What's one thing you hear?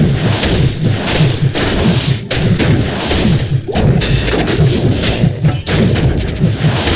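Weapons strike and clash in a fast fight.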